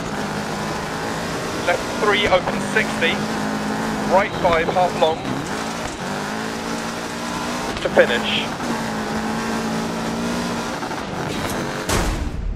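A rally car engine roars steadily and changes pitch as the car shifts gears.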